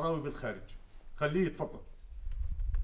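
A man speaks into a telephone nearby.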